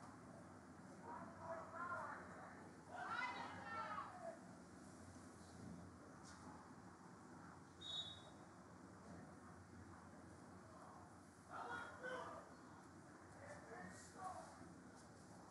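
Young women shout to each other across an open field, heard from a distance.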